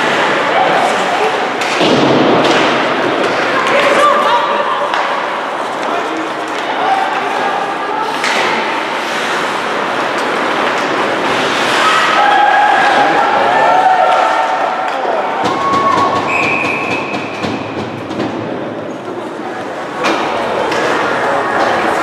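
Spectators nearby chatter and call out.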